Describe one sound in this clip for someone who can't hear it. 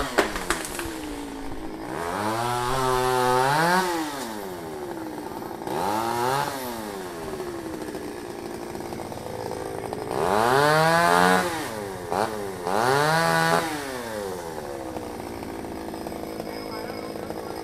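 Leaves and branches rustle as a man climbs in a tree.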